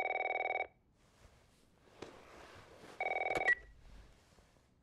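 Bedsheets rustle as a person stirs in bed.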